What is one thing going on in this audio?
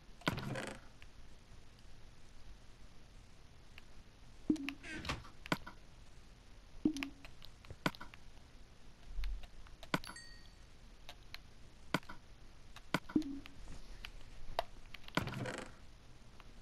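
Short soft clicks sound as items are moved around.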